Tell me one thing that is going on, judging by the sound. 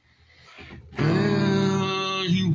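A middle-aged man sings loudly close to a microphone.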